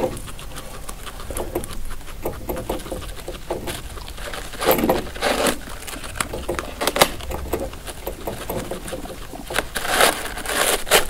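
Dry hay rustles as a guinea pig pulls at it.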